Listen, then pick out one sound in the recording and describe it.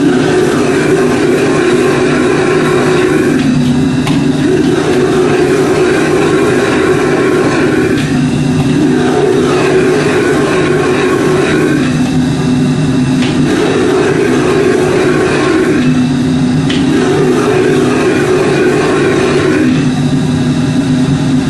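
A gas wok burner roars.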